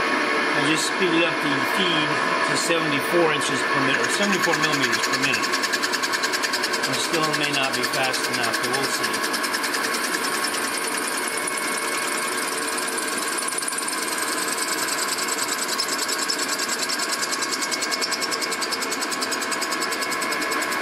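A milling machine cuts metal with a steady whirring grind.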